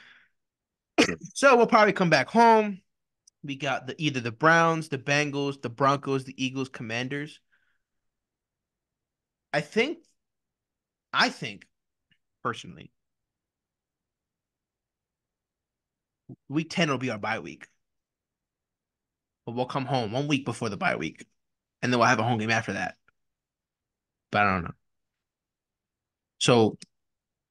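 A young man talks with animation into a microphone, close by, in bursts with pauses.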